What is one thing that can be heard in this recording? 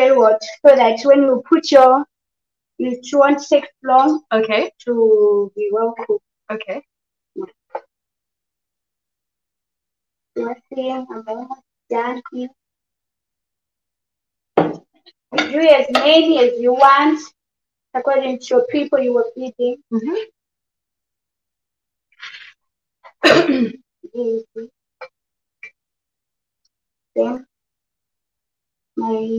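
A woman speaks calmly and clearly, close by, with pauses.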